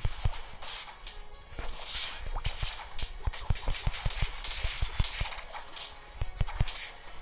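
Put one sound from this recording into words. Video game combat effects thump and zap in quick, repeated bursts.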